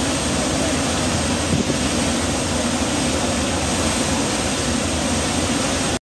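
A ship's wake churns and rushes behind the stern.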